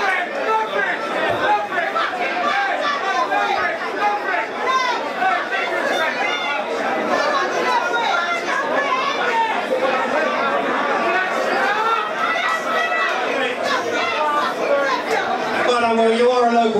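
A crowd chatters and cheers in a large echoing hall.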